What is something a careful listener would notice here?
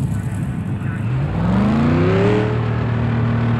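A racing car engine revs up sharply.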